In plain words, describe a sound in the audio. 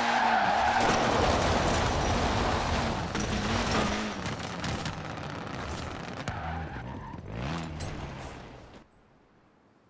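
A car engine roars loudly as the car speeds along.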